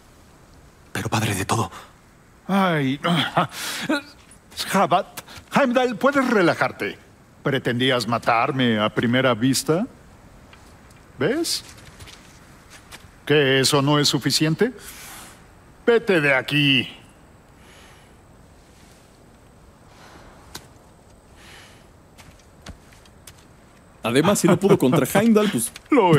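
A man talks in a deep, calm voice, close by.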